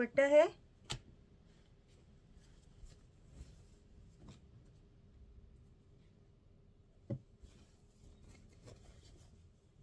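Cloth rustles softly as hands handle it.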